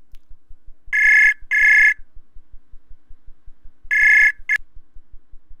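A call tone rings twice from a computer.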